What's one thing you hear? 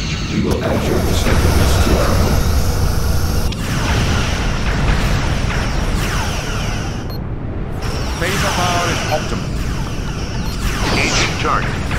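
A phaser beam fires with a sweeping electronic whine.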